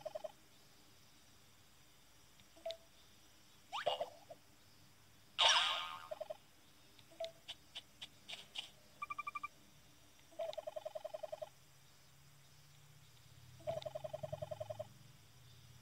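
A handheld game console beeps in quick bursts of blips as dialogue text scrolls.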